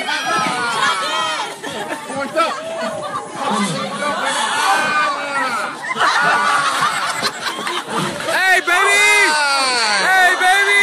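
A crowd of young people shouts and cheers excitedly outdoors.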